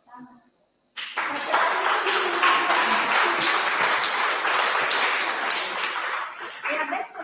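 People applaud.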